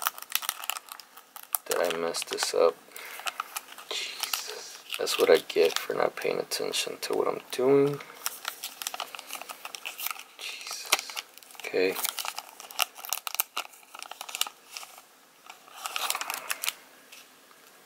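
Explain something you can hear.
Foil wrappers crinkle and rustle as hands handle them.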